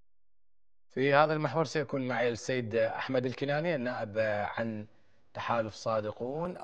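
A man speaks calmly and clearly into a microphone, like a news presenter.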